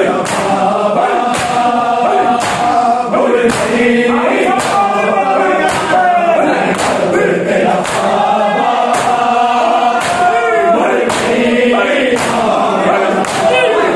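A crowd of men chants loudly together in a rising and falling tune.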